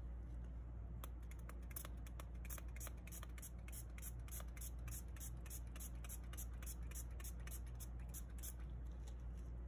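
A spray bottle squirts in quick, rapid bursts.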